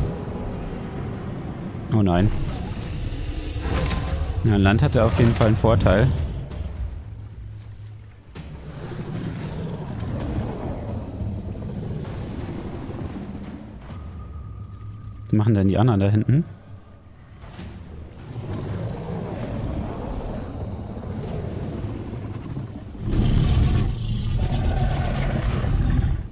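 A large reptile creature stomps heavily over ground.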